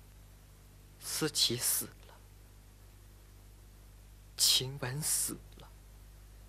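A young woman speaks in short, tense bursts close by.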